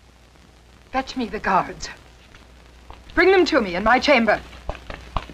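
A woman speaks firmly nearby.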